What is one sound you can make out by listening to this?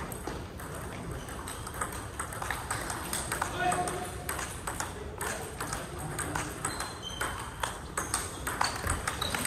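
Table tennis balls click rapidly against paddles and tables in a large echoing hall.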